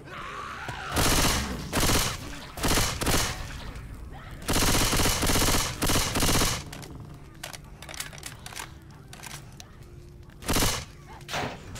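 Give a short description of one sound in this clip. Guns fire in loud, rattling bursts.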